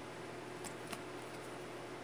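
Cards riffle and slide softly in a hand.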